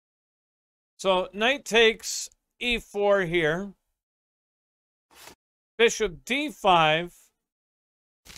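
An elderly man talks with animation into a microphone, in short bursts with pauses.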